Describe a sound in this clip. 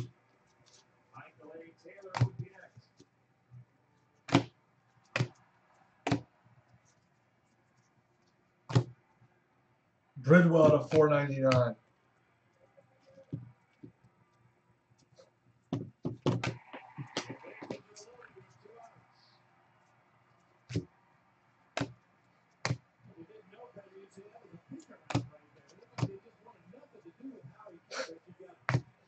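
Trading cards riffle and slap against each other as they are flipped.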